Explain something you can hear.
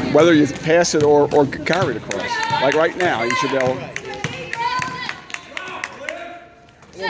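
A basketball bounces repeatedly on a wooden floor.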